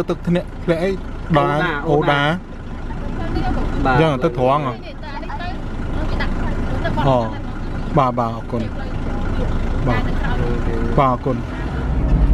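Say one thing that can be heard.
A man asks questions close by.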